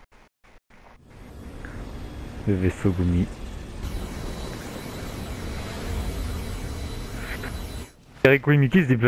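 A small spaceship flies with a rushing hum.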